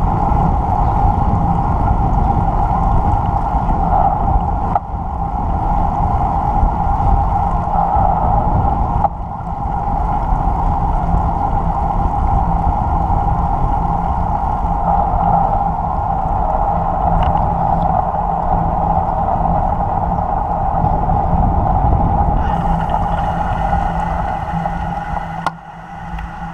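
A motor hums steadily while moving along a road.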